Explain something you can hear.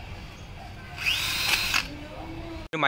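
A cordless drill whirs briefly as it drills through plastic.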